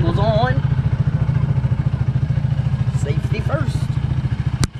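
A teenage boy speaks casually close by.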